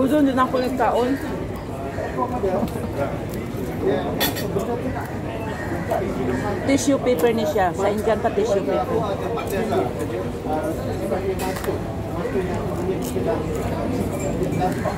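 A middle-aged woman talks close by with animation.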